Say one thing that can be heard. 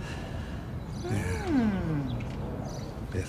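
A woman asks a short, surprised question.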